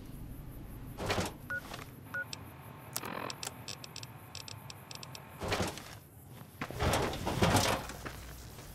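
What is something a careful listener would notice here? Soft electronic clicks and beeps sound from a handheld device.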